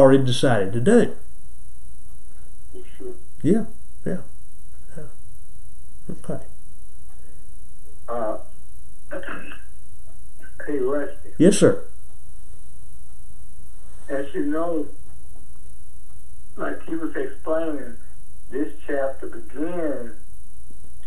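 An elderly man speaks calmly and thoughtfully close by, with pauses.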